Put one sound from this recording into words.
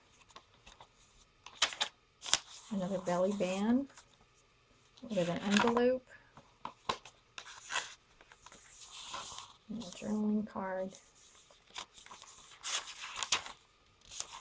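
Pages of a paper journal rustle and flap as they are turned by hand.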